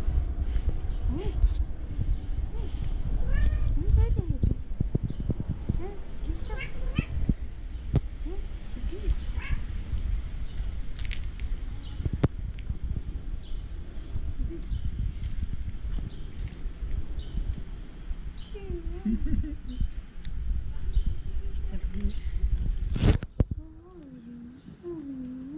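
A cat meows repeatedly, close by.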